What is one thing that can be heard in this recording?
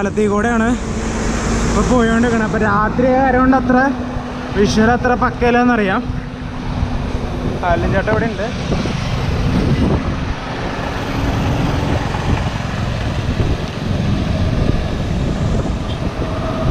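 Wind buffets and rumbles steadily outdoors.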